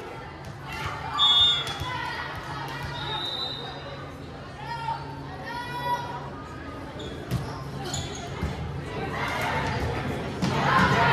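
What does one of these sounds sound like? Girls call out and chatter in a large echoing gym.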